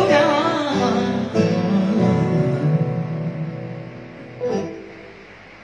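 A man sings into a microphone close by.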